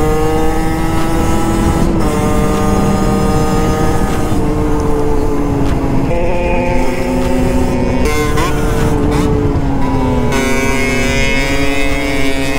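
Wind rumbles loudly past the rider.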